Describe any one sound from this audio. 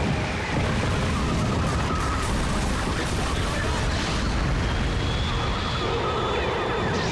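Fires roar and crackle in a low, steady rumble.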